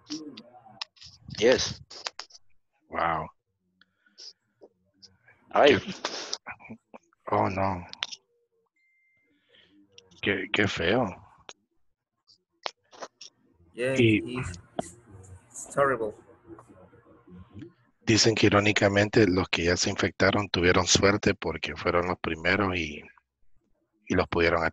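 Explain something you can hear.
A young man speaks calmly over an online call, with pauses.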